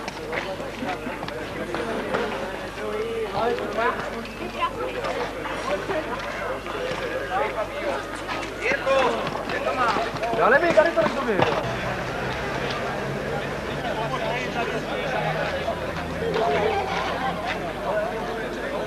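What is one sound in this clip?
A crowd of men and women talks and calls out outdoors.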